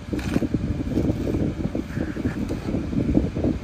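Masking tape peels away from a metal panel with a soft ripping sound.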